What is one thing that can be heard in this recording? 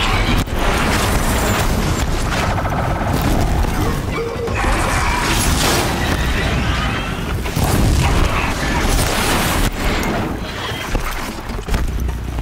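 Metal machines clank and crash in a fight.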